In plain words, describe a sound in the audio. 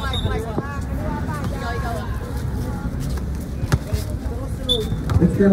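Boys talk and call out nearby outdoors.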